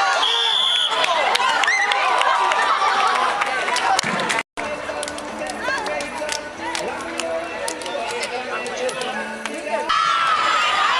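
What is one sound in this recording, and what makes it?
A crowd of children chatters and shouts loudly outdoors.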